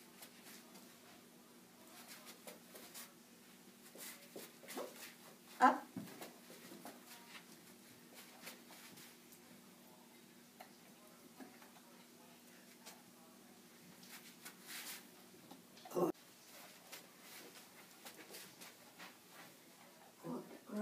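A woman speaks softly to a dog nearby.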